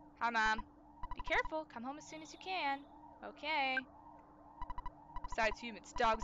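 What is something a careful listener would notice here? Short electronic blips chirp rapidly as game text prints out.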